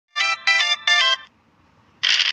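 A short, bright game jingle plays.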